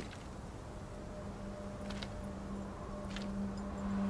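Heavy armour clanks with slow footsteps on stone.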